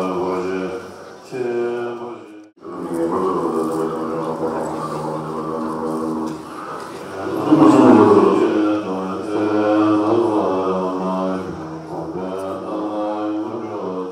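Men chant together in low, droning voices.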